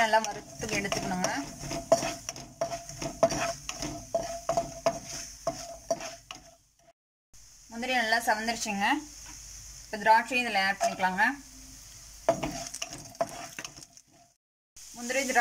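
A wooden spatula scrapes and stirs in a pan.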